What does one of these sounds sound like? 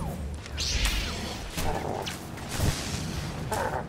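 Lightsabers clash with sharp crackling hits.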